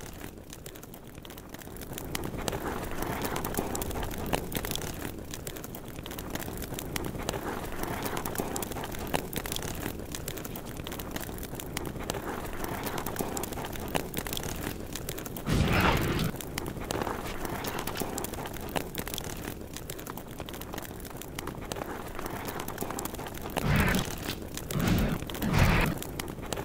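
Footsteps thud on concrete.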